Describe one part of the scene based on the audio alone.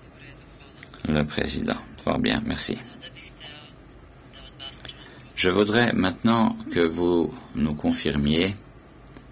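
An elderly man speaks calmly and formally into a microphone.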